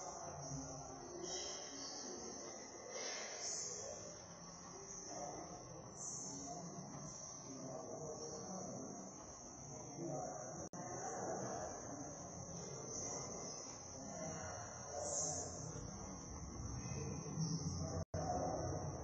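Several adults chat quietly in a large echoing hall.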